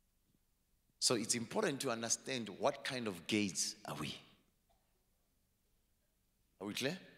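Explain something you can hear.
A man speaks with animation into a microphone, heard through loudspeakers.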